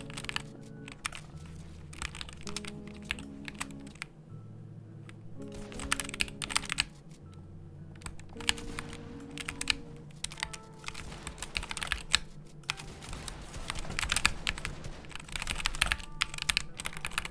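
Keys on a mechanical keyboard clack rapidly.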